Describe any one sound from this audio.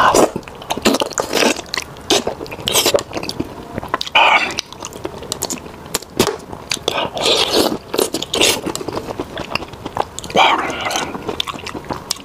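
A man slurps food close to a clip-on microphone.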